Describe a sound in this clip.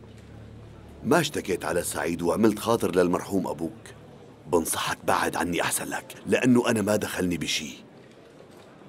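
A middle-aged man shouts angrily up close.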